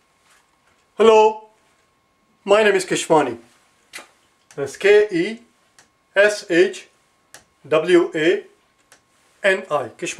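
A middle-aged man speaks clearly and calmly, close by.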